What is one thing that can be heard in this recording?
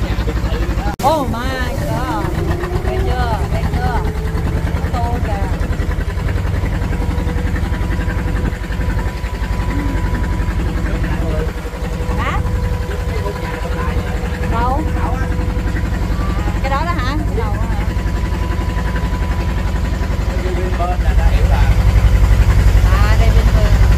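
Men talk and call out nearby.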